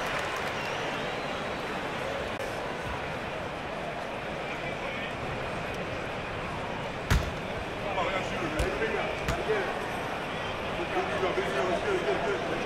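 A large crowd murmurs steadily in an echoing arena.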